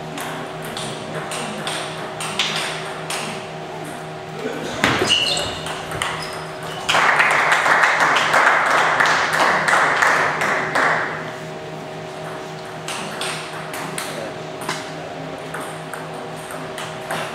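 A table tennis ball clicks back and forth off paddles and the table in a large echoing hall.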